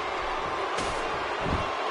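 A metal chair slams against a wrestler's back.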